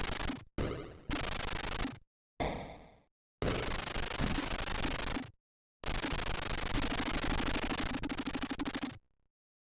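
Noisy retro video game gunfire and explosions crackle in bursts.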